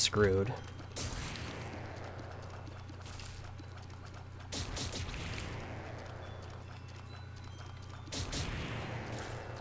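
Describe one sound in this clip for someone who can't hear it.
A game laser beam blasts with a rushing roar and slowly fades.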